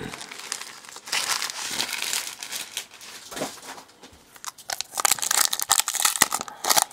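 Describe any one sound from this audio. Trading cards rustle and slide against each other in a hand.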